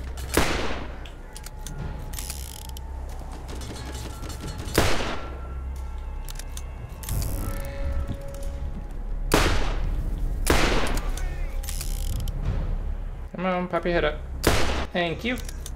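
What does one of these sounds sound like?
A sniper rifle fires loud sharp shots with a ringing echo.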